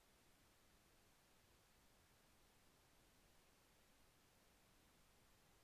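Television static hisses steadily and softly.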